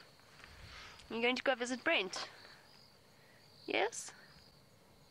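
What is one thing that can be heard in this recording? An elephant tears and rustles grass close by.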